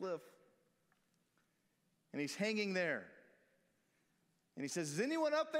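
A man sings loud, drawn-out notes into a microphone in a reverberant hall.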